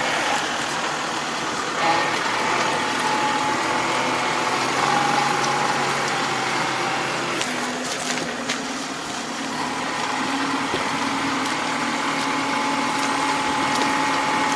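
A rotary tiller churns through wet mud.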